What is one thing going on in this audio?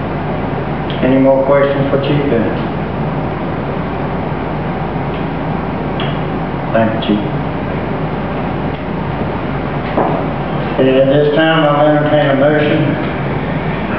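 A man speaks in short bursts through a microphone in an echoing room.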